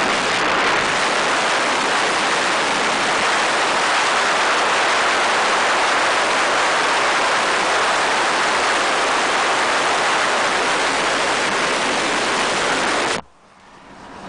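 Wind and road noise rush loudly past an open car window.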